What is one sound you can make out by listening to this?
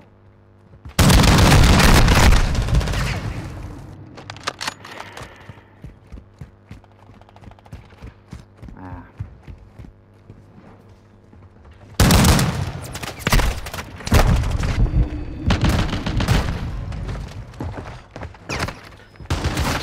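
Guns fire in loud, rapid bursts.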